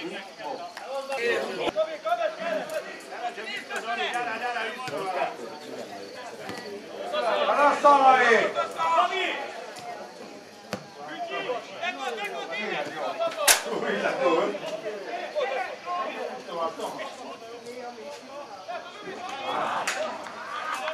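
Men shout and call out across an open field throughout.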